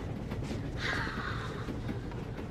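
A young girl breathes out hard in a sharp, breathy gasp close by.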